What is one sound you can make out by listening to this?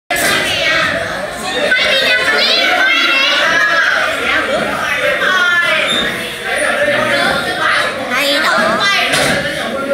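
A crowd of teenagers chatters and laughs loudly in an echoing room.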